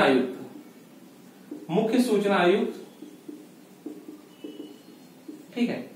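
A young man speaks in a lecturing tone, close by.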